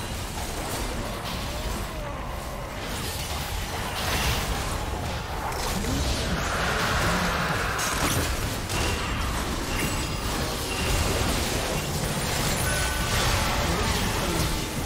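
Spells and weapons clash and crackle in a busy game battle.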